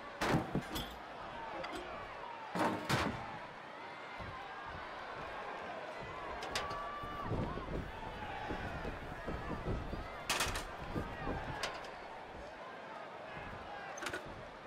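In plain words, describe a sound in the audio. A large crowd cheers and chants loudly throughout.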